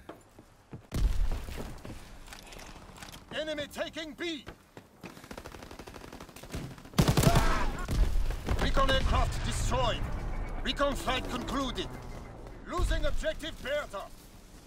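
Heavy explosions boom and rumble nearby.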